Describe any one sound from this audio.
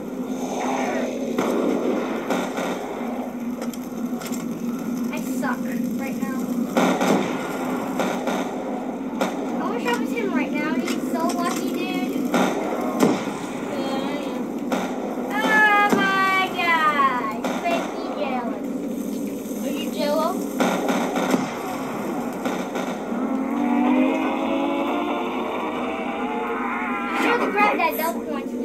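Gunfire and explosions from a video game play through a television speaker.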